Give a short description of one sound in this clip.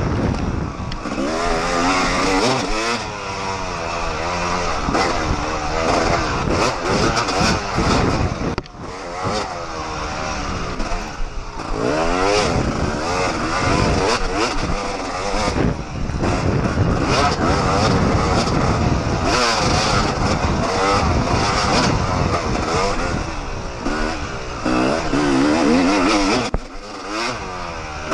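Knobby tyres crunch and thump over a bumpy dirt trail.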